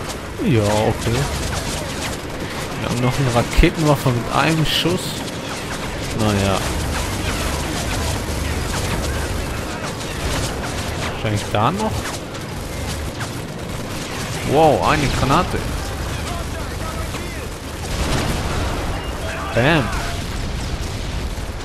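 A low battle rumble runs throughout.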